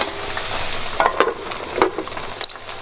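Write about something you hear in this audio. A lid clatters onto a frying pan.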